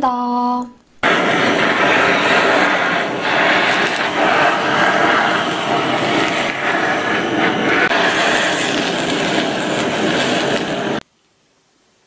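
A blowtorch flame roars steadily.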